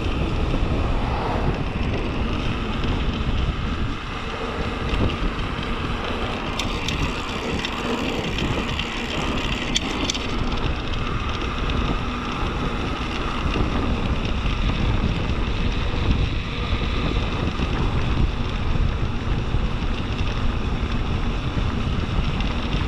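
Wind rushes loudly past a moving rider.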